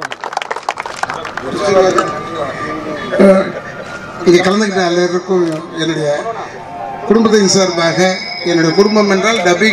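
A man speaks into a microphone, heard through a loudspeaker outdoors.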